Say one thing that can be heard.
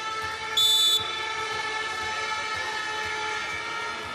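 A volleyball bounces on a hard floor.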